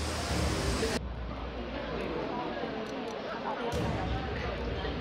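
Teenage girls chatter and giggle close by.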